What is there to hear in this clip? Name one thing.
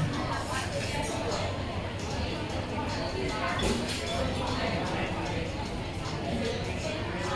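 Several adults talk at once, a low indistinct murmur.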